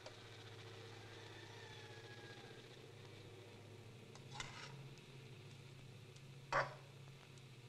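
Metal pots clank and clink.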